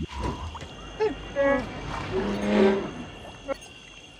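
A furry creature growls and warbles.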